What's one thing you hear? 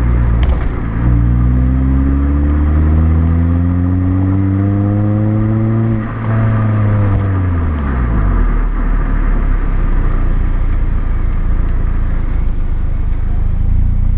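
A car exhaust roars loudly close by as the engine revs up and drops back.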